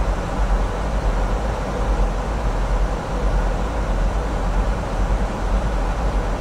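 Jet engines roar with a steady, deep drone inside an aircraft cabin.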